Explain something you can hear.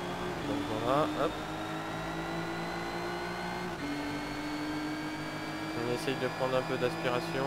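A racing car engine roars steadily, its pitch climbing slowly with a shift to a higher gear partway through.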